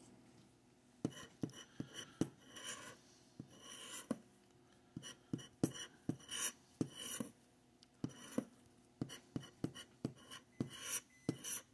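A plastic scraper scratches rapidly across a ticket's coating.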